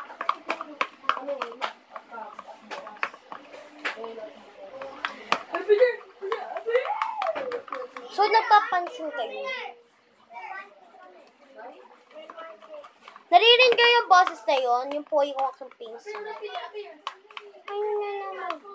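A plastic container clicks and crinkles in a girl's hands.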